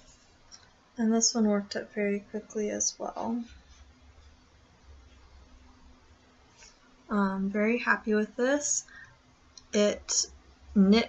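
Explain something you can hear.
A young woman speaks calmly and close to the microphone.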